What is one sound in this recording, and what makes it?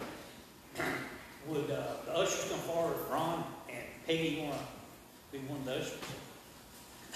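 A man speaks calmly at a distance in an echoing hall.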